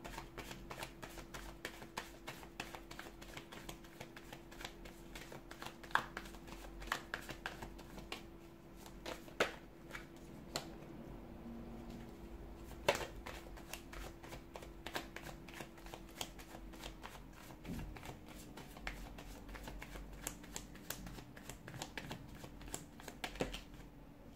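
Playing cards are shuffled with quick, soft riffling and tapping.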